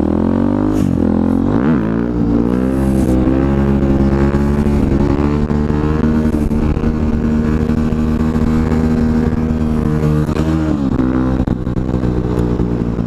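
A motorcycle engine roars steadily at high revs.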